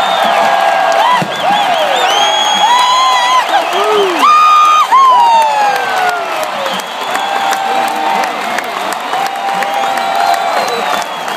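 Fans whistle loudly, with piercing rising and falling whistles.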